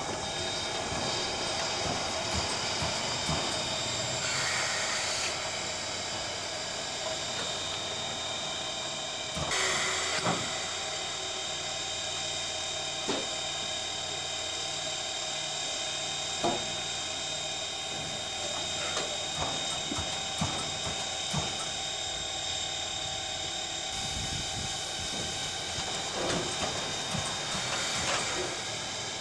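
A steam locomotive's wheels and rods clank slowly along the rails.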